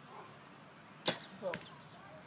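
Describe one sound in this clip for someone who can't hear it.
A bowstring snaps sharply as an arrow is released.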